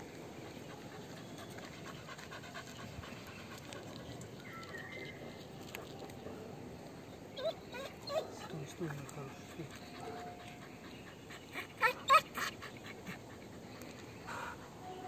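A dog pants steadily.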